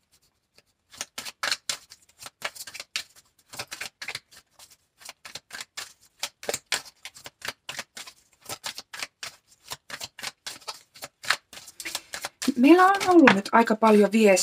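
A deck of cards is shuffled with quick, crisp flicking.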